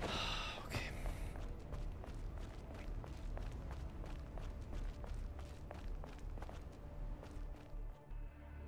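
Quick footsteps thud on dirt.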